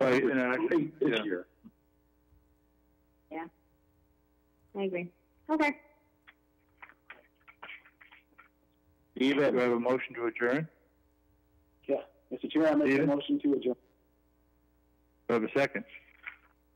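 A man speaks over an online call, in short bursts with pauses.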